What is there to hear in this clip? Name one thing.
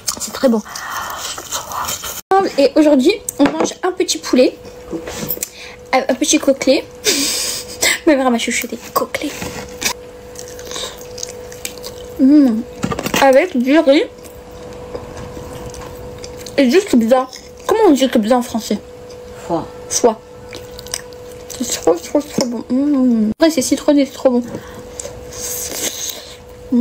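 A young woman chews food noisily close to a microphone.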